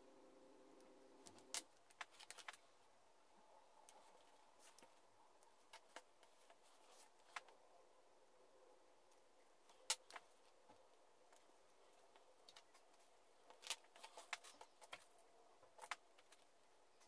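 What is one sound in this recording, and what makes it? A craft knife scrapes and lifts a paper template.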